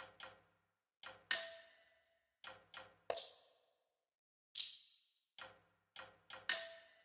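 Menu sounds click and chime as options are selected.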